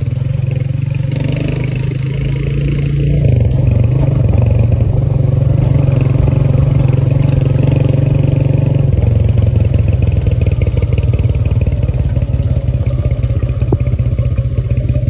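Tyres crunch and rattle over a dirt track.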